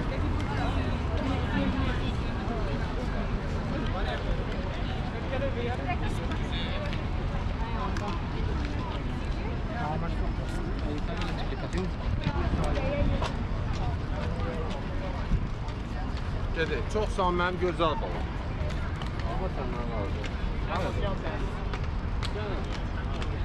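A crowd of people chatters and talks nearby outdoors.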